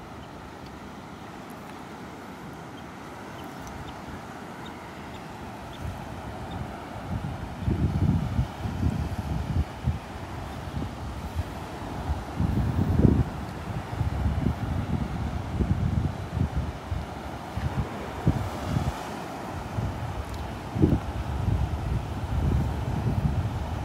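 Small waves wash and break gently on a shore.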